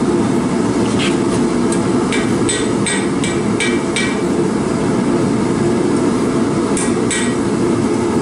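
A hammer rings on hot metal on an anvil.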